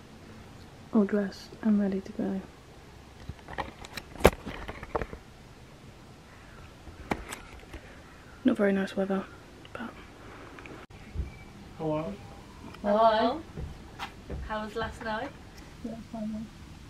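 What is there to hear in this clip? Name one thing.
A young woman talks quietly close by.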